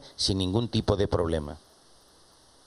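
A man speaks into a microphone, heard through a loudspeaker.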